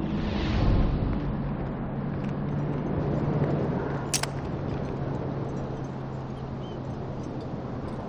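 A small engine idles with a low steady hum.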